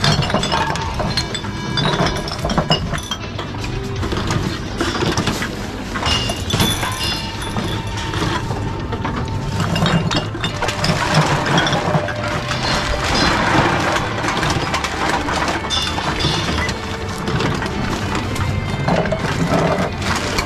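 Glass bottles clink against each other as they are handled.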